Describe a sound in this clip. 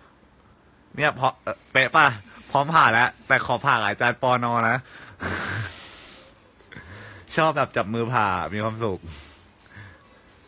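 A young man laughs close to a phone microphone.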